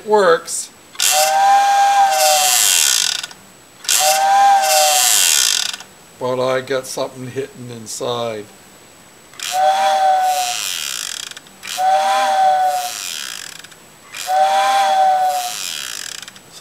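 An electronic circuit sounds a short warbling tone several times.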